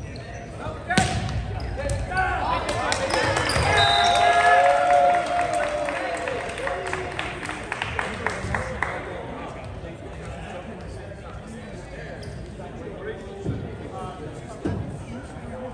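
A volleyball is struck with a hard slap in an echoing gym.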